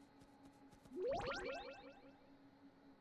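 A bright rising chime sounds as a menu pops open.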